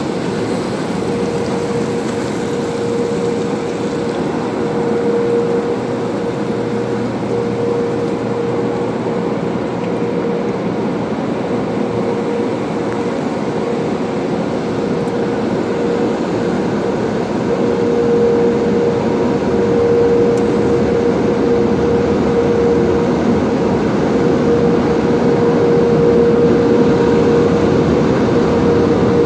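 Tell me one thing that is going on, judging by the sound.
Car wash machinery hums steadily.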